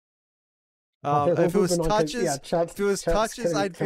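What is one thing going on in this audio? A man speaks with animation through a microphone over an online call.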